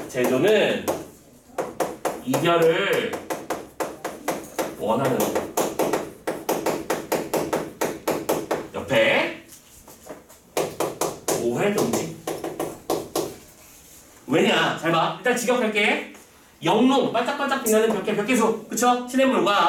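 A man lectures calmly and clearly, close by.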